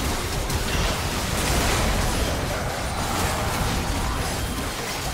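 Spell effects crackle and blast in a chaotic game battle.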